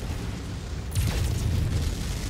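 Laser weapons fire with a sharp burst.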